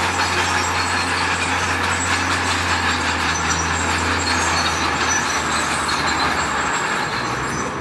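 A truck engine rumbles steadily nearby.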